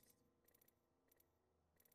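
Interface clicks tick quickly in a game menu.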